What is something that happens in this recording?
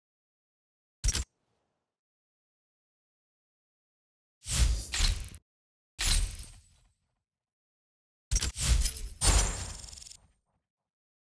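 Short whooshing and chiming interface sounds play in bursts.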